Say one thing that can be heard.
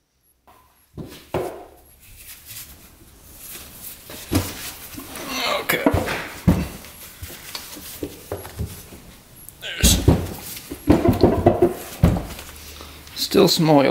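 Metal parts of an aluminium engine crankcase clank and scrape as it is pried apart by hand.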